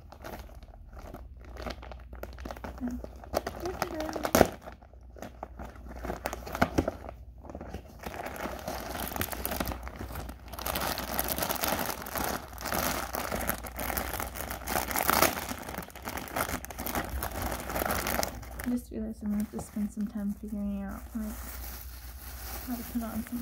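A plastic bag crinkles and rustles as it is handled and opened.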